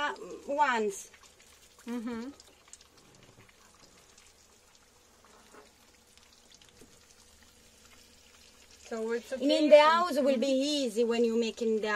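Water simmers quietly in a frying pan.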